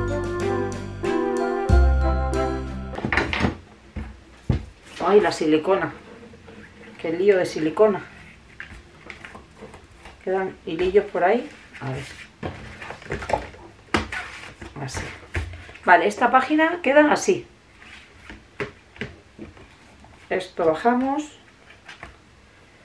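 Stiff paper rustles and flaps as it is handled.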